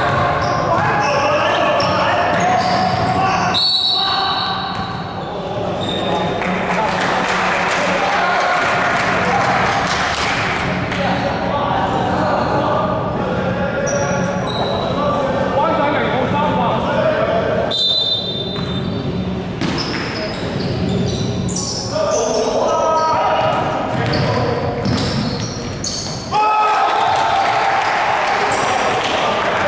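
Young men shout to each other across the court in a large echoing hall.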